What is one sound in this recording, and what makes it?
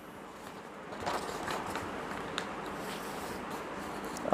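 A sheet of paper rustles as it is folded and handled.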